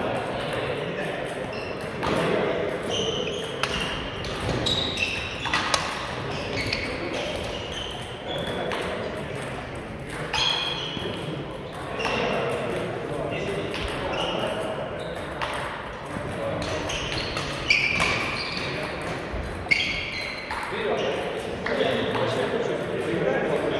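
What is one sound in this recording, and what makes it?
Rackets smack shuttlecocks in a large echoing hall.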